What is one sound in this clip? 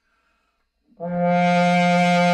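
A horn plays a loud sustained note.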